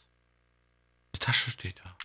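A short game chime sounds as an item is picked up.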